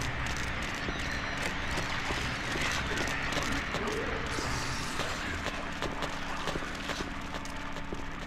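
Slow footsteps thud on a hard floor.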